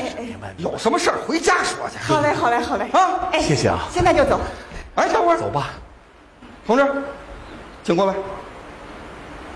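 A woman talks with animation through a stage microphone.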